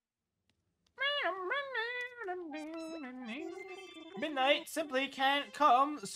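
Electronic game music plays bright, bouncy tones.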